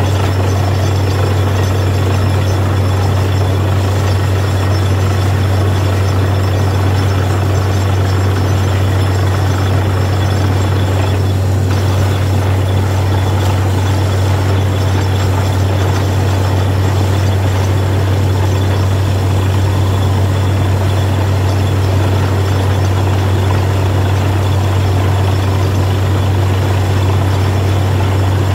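A drilling rig's diesel engine drones loudly and steadily.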